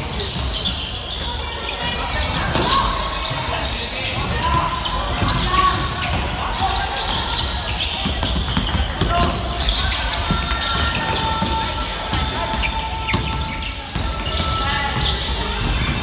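Voices of players and onlookers echo in a large hall.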